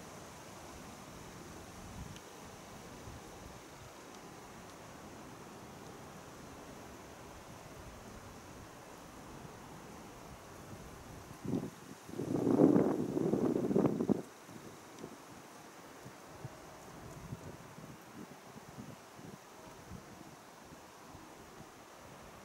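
Wind blows softly outdoors.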